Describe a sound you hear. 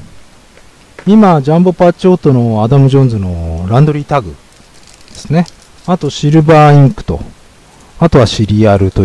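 A young man talks with animation into a nearby microphone.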